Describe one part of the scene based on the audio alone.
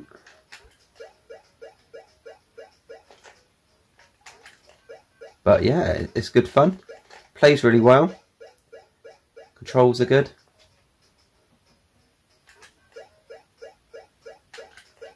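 Short electronic game bleeps repeat in a quick, steady rhythm.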